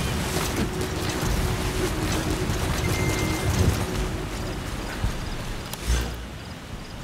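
Footsteps crunch and leaves rustle as someone moves through dense undergrowth.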